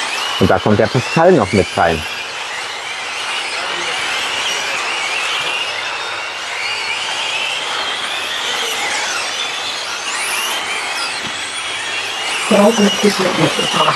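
Small electric racing cars whine at high pitch as they speed around a track, rising and falling.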